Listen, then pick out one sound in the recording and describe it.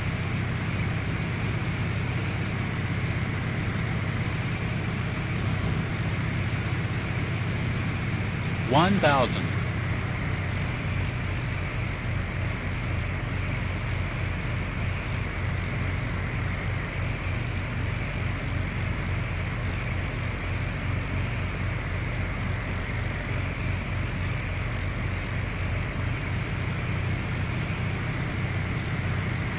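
A light propeller plane's engine drones steadily from inside the cockpit.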